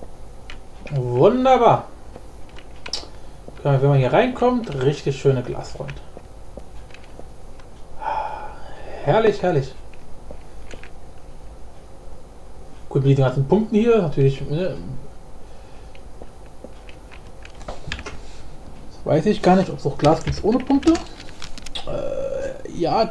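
A man talks into a close microphone in short bursts, calmly.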